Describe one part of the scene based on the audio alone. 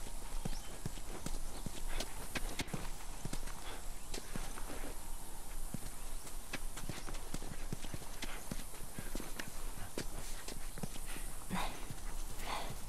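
Footsteps crunch on rough ground at a steady pace.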